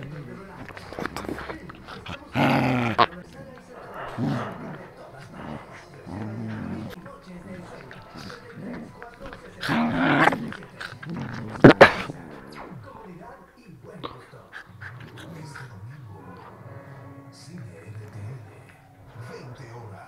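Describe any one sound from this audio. Small dogs growl and snarl while play-fighting.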